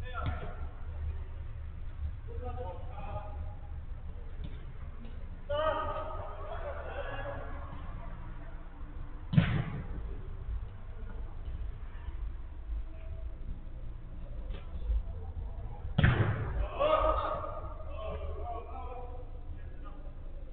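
Men shout to each other across a large echoing indoor pitch.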